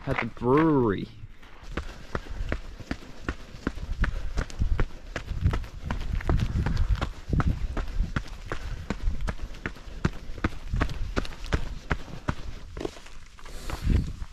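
Footsteps crunch on a gravel trail.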